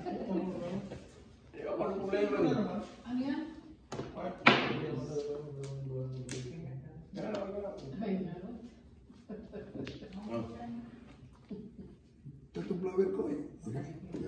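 Adult men and women talk casually nearby, several voices overlapping.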